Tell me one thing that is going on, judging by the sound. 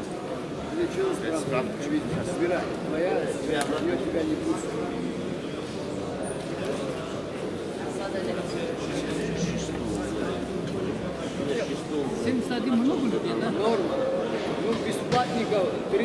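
Several men talk among themselves in a large echoing hall.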